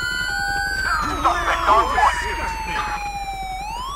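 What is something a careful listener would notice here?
Gunshots crack in a quick burst.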